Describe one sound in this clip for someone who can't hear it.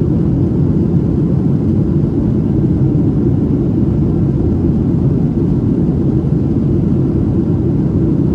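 Jet engines roar with a steady, low rumble inside an airliner cabin in flight.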